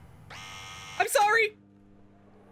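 A young woman shrieks loudly into a microphone.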